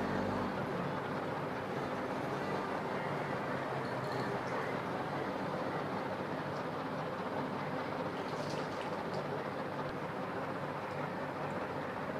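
Juice trickles from a lemon into a glass.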